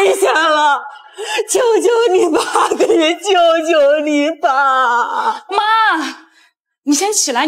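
A middle-aged woman wails and pleads through sobs, close by.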